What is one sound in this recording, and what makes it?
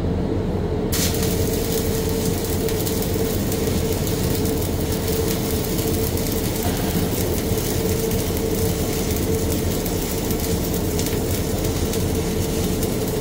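An electric welding arc crackles and hisses steadily.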